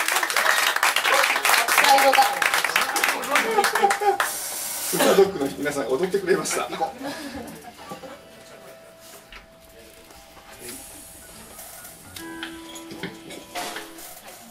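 A band plays lively electric guitar music loudly, then quiets down.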